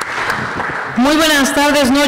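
A crowd of voices cheers loudly together.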